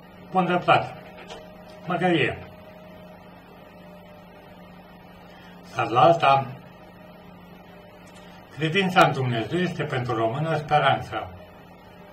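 An elderly man speaks calmly close to a microphone, in short bursts with pauses.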